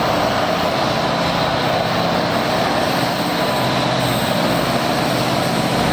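A diesel locomotive rumbles steadily as it approaches along the track.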